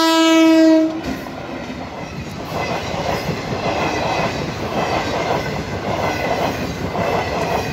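A train rumbles and clatters past on the rails, close by.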